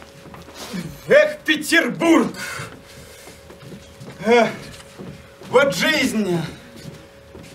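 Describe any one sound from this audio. A young man exclaims theatrically, with animation.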